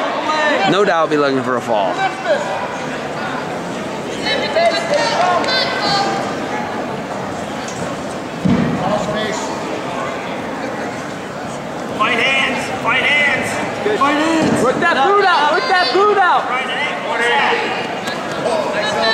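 Several men shout loud encouragement from the stands.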